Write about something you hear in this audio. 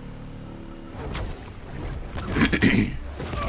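A web shoots out with a sharp swish.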